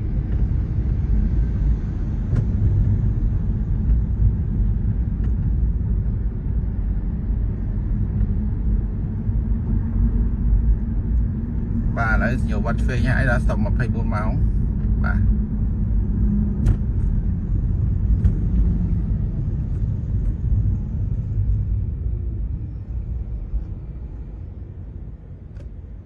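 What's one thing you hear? A car's engine and tyres rumble steadily on the road, heard from inside a moving vehicle.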